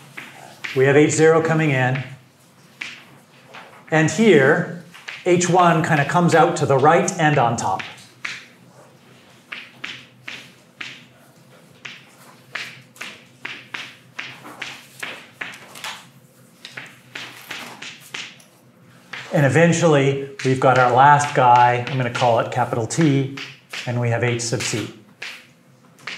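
A man lectures calmly in a slightly echoing room.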